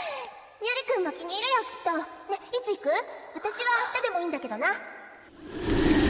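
A young woman speaks softly, asking questions.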